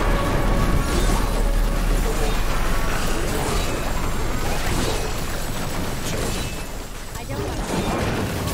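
Fiery spell blasts crackle and roar in a battle.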